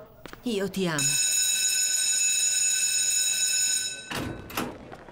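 A school bell rings loudly and steadily.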